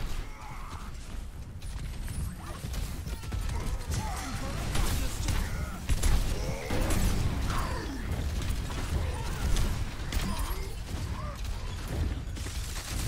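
Gunfire and explosions crackle in a video game.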